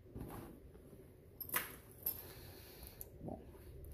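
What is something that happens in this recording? A hard fabric case's lid flips open with a soft thump.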